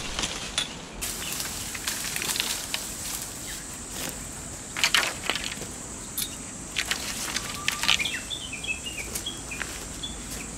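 Boots crunch on gravel.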